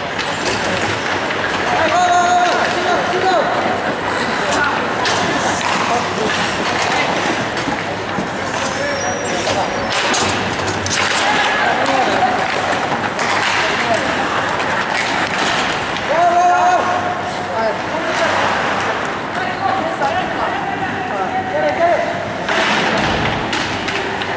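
Skates scrape and carve across ice in a large echoing rink.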